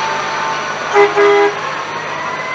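A fire truck's air horn blasts briefly.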